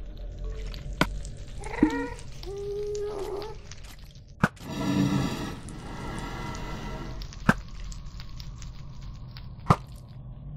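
A bow fires arrows with sharp snaps.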